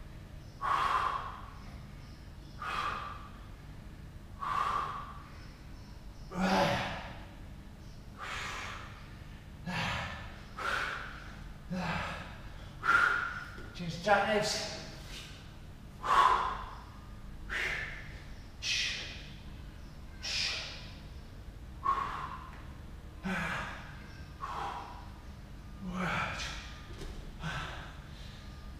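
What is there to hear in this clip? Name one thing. A man exhales hard with each repetition of an exercise.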